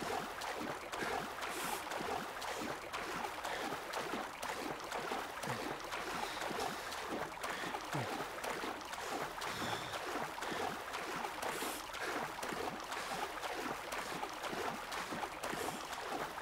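Waves slosh and splash steadily around a swimmer in open water.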